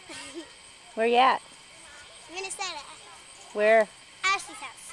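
A young girl squeals loudly with laughter.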